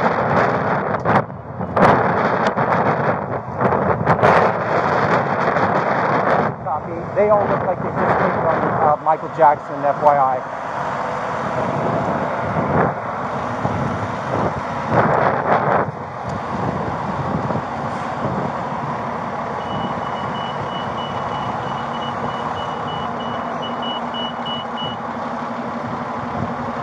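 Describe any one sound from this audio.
A bus engine idles loudly nearby.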